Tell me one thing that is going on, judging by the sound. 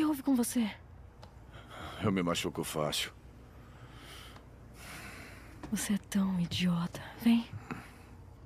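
A woman speaks softly and closely.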